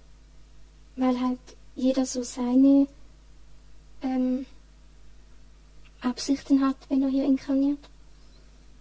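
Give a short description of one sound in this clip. A young girl answers quietly in short phrases over an online call.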